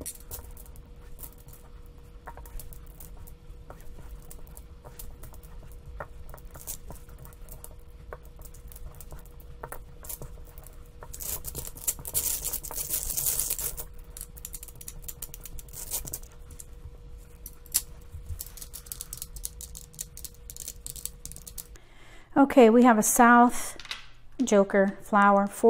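Plastic tiles click and clack as they are placed on a rack.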